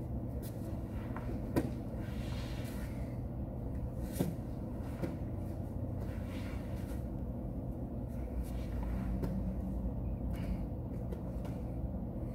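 A body thumps softly onto a padded mat.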